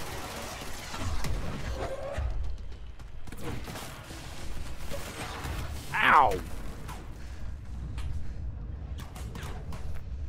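Explosions boom with a deep rumble and scattering debris.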